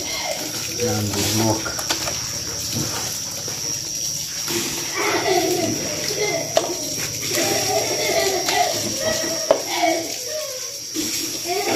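Raw meat squelches and slaps wetly against a metal bowl.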